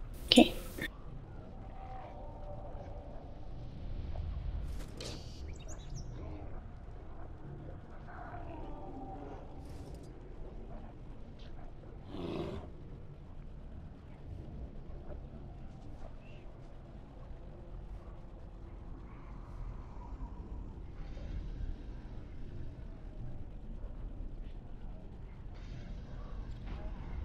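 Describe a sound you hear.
Magic effects whoosh and swirl.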